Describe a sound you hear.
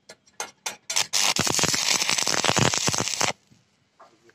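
An arc welder crackles and buzzes loudly.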